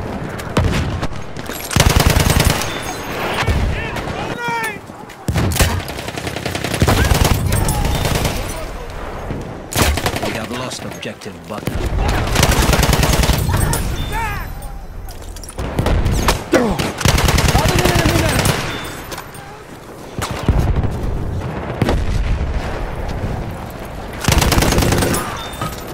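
An automatic rifle fires in bursts.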